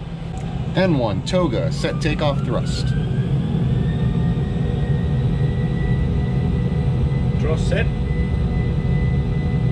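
Jet engines spool up with a rising whine and a steady low roar.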